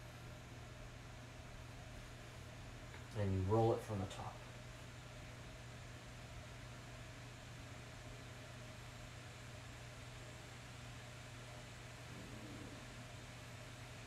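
Clothes rustle softly as they are folded.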